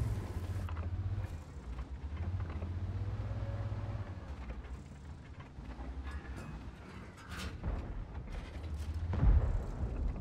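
A tank engine rumbles low and steadily.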